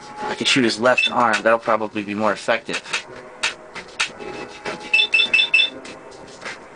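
Short electronic beeps sound several times.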